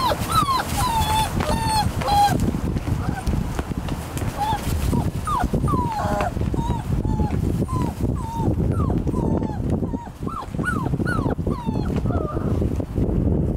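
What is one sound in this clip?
Puppies whimper and yelp in high squeals.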